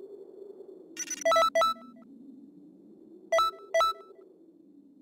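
Bright electronic chimes ring out in short bursts.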